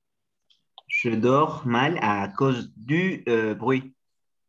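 A young man speaks calmly through a microphone on an online call.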